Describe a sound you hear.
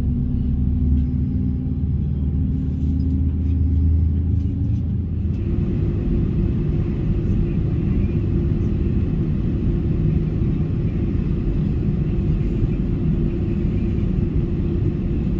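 A jet engine hums and roars steadily close by as an airliner taxis.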